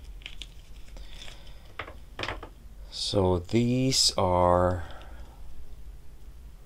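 Plastic toy figures click and rustle as hands handle them close by.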